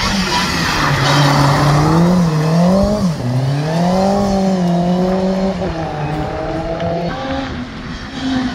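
A second rally car engine rises and falls as the car brakes and accelerates through a hairpin.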